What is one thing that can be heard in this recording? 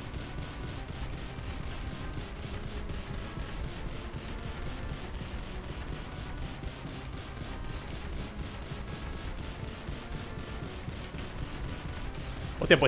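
Electronic game music plays steadily.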